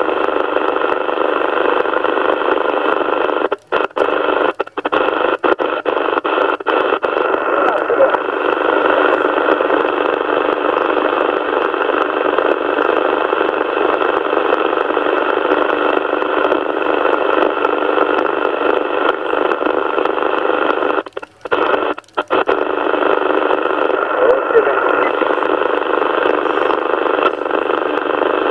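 A radio receiver hisses with steady static through a small loudspeaker.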